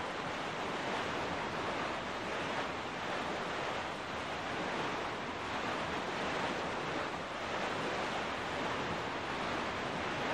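A small boat rushes steadily across open water, its hull hissing and splashing through the waves.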